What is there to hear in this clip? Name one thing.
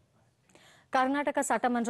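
A woman reads out calmly, close to a microphone.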